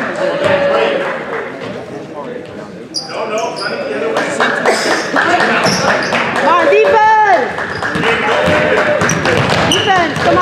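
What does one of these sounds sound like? A basketball bounces on the hardwood floor.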